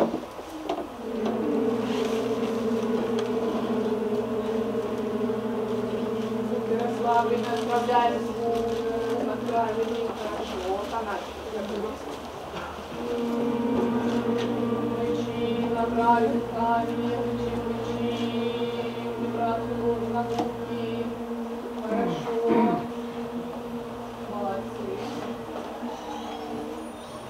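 A chorus of children sings in a large hall.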